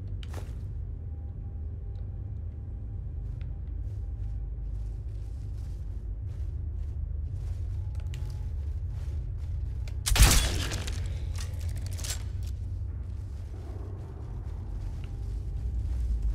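Armored footsteps run quickly over stone.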